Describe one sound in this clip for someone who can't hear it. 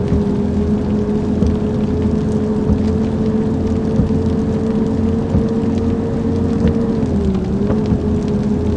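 A bus engine hums steadily as it drives along a road.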